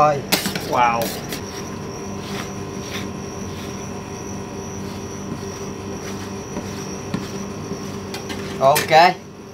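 Metal spatulas scrape and tap on a metal plate.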